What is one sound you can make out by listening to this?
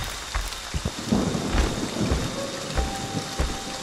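Leafy branches rustle and thrash.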